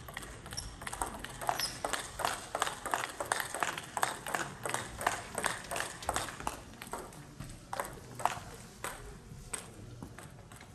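A table tennis ball clicks rapidly back and forth off paddles and the table in a large echoing hall.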